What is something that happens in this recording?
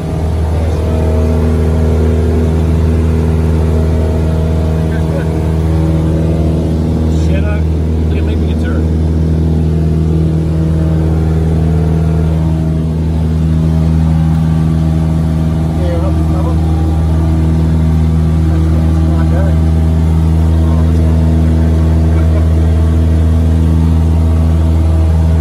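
A small plane's propeller engine drones loudly and steadily from inside the cabin.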